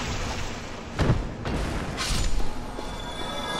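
A large creature collapses with a heavy thud.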